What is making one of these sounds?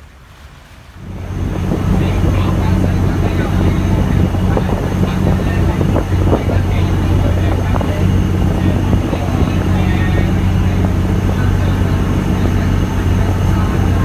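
Water splashes and rushes against a boat's hull.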